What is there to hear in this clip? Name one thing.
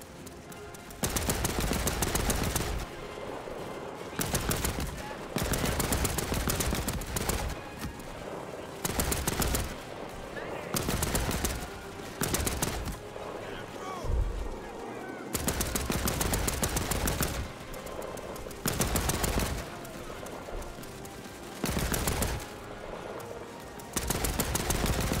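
A machine gun fires in long rapid bursts close by.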